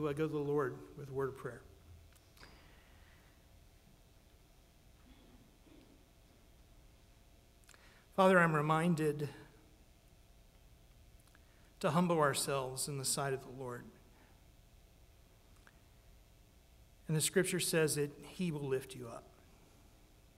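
A man speaks slowly in short phrases through a microphone and loudspeakers, with long pauses between them.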